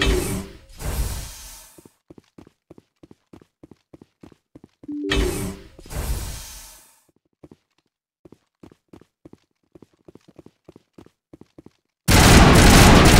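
Heavy footsteps thud steadily on a metal floor.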